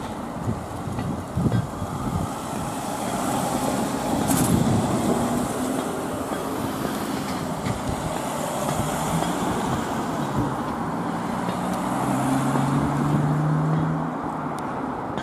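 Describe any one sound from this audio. A van engine rumbles as it drives past and pulls away.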